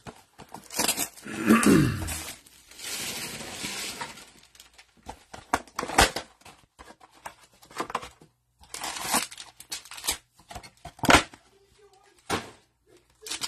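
A cardboard box scrapes and rustles as it is handled and opened.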